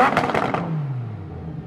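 A sports car's exhaust crackles and pops sharply.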